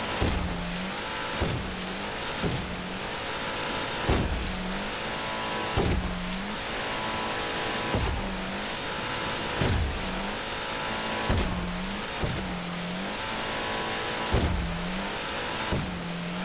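A motorboat engine drones steadily.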